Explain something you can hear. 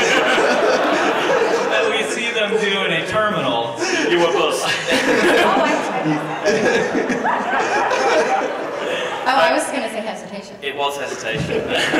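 An audience laughs loudly.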